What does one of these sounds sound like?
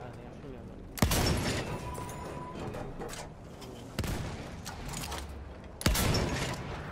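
A rifle fires sharp, loud shots.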